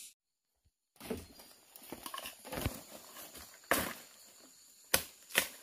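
Dry leaves and twigs rustle as hands push through them.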